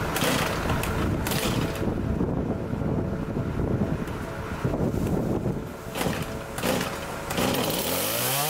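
A chainsaw's starter cord is pulled sharply, again and again.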